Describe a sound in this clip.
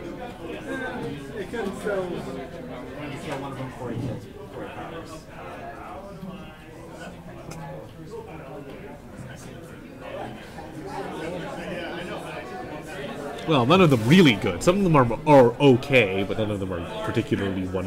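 Men talk nearby, calmly at first and then more animatedly.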